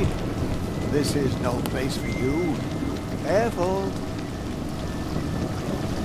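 A fire crackles and burns.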